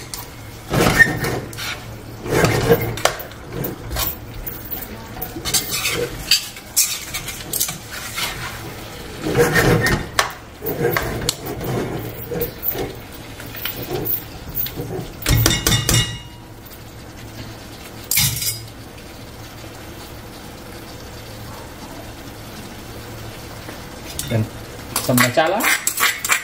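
A metal spatula scrapes and clatters against a frying pan.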